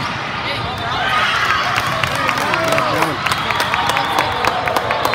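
Young women cheer and shout excitedly.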